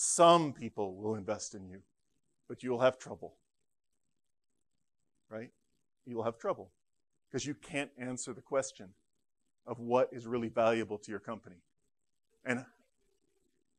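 A man lectures through a microphone in a large room, pausing between phrases.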